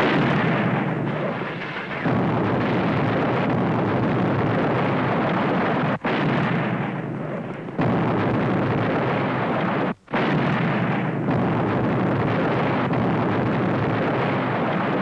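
Explosions boom and roar, one after another.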